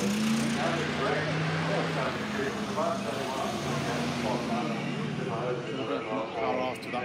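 A car engine revs as the car drives past on a road.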